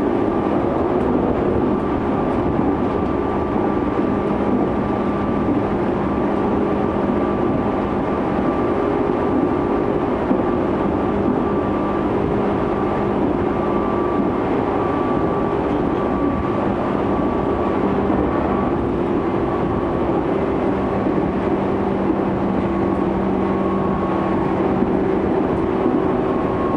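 Traction motors of an electric train whine with a steady hum.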